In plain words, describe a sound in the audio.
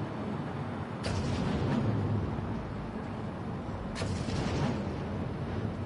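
Explosions burst with sharp blasts.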